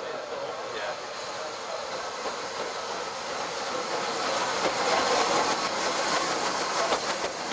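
A steam locomotive puffs and hisses loudly as it pulls in close by.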